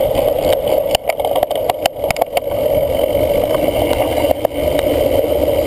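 A cyclocross bike rattles and knocks over bumpy ground.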